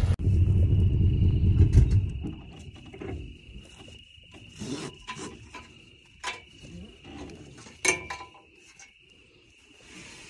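A nylon strap rattles against a metal grate.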